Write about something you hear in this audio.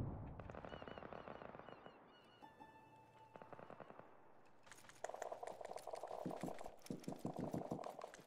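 Footsteps crunch quickly over sand.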